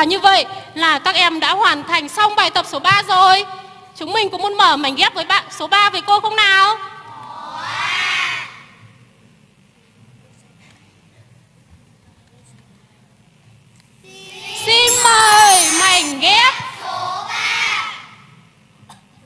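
A woman speaks with animation through a microphone and loudspeakers in a large echoing hall.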